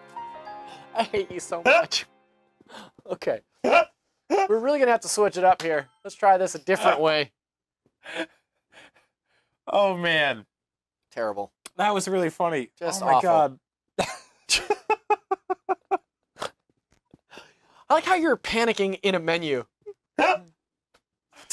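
A man talks in a cheerful, relaxed voice, close to a microphone.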